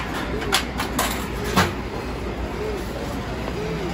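Paper rustles as a boy pulls out a wet tissue.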